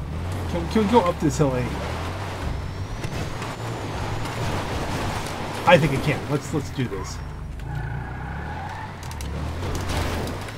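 Tyres scrape and skid on loose dirt.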